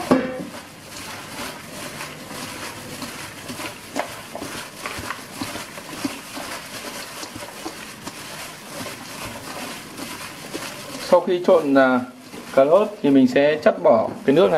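Gloved hands toss shredded vegetables in a metal bowl with a soft rustle.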